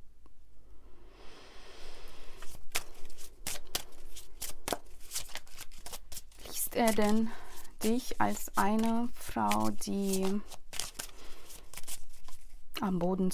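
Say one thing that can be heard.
Playing cards rustle and flick as they are shuffled.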